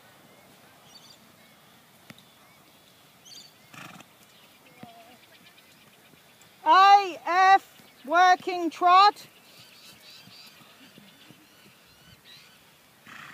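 A horse trots on grass with soft, muffled hoofbeats.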